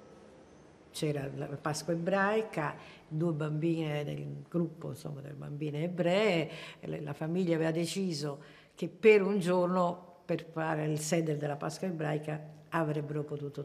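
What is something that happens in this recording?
An elderly woman speaks calmly and close to a microphone.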